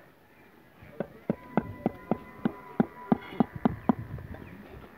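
A small hammer taps on clay bricks.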